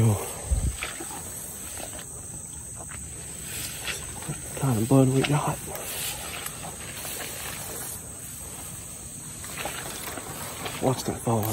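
A man talks quietly and close up, in short bursts.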